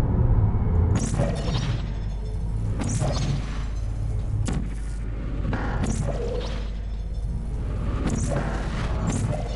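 A gun fires with short electric zaps.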